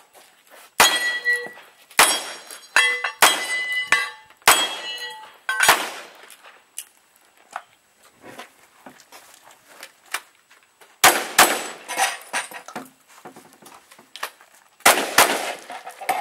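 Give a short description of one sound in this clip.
Metal targets ring after being hit.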